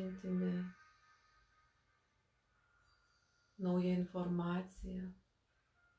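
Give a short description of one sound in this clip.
A middle-aged woman chants in long, steady tones, close to a microphone.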